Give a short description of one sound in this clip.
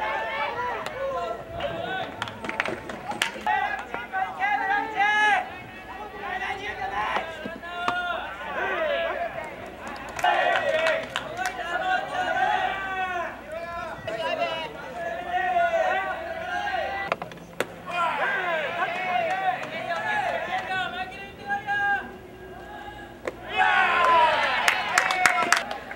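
A crowd of spectators cheers and chants in the stands.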